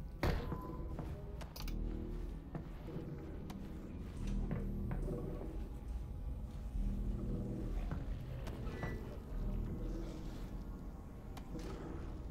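A door handle rattles and a door swings open.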